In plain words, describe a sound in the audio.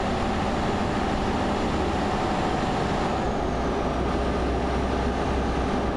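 A bus rushes past close by.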